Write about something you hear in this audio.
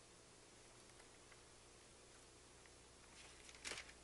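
Pages of a book rustle as a man turns them.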